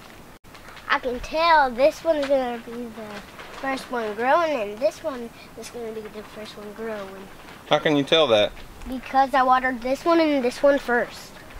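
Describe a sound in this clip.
A young child talks with animation close by.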